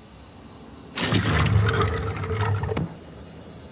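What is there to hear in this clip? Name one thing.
A mechanism rattles and whirs loudly.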